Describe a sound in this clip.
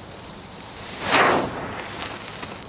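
A smoke firework bursts with a short whoosh.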